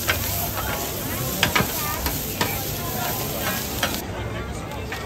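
Metal scrapers clatter and scrape on a hot griddle.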